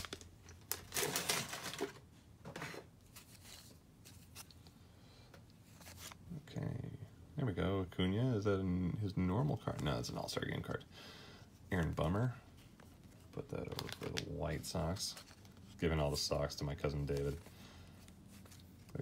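Trading cards shuffle and rustle between fingers.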